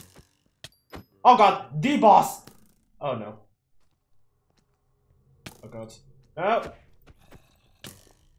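A sword swings and strikes with short, sharp hits.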